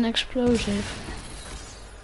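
A pickaxe strikes a wooden shelf with a dull thud.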